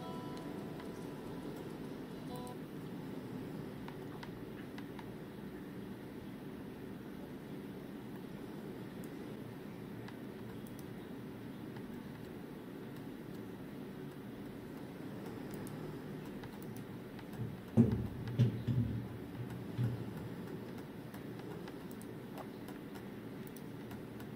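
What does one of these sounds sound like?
Buttons on a handheld game controller click softly.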